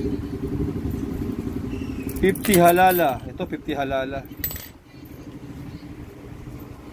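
Metal coins clink together in a hand.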